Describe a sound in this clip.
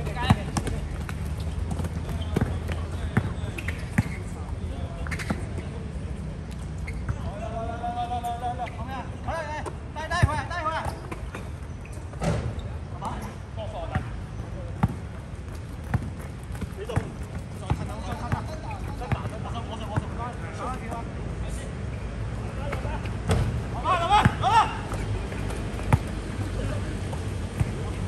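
A basketball bounces on an outdoor hard court.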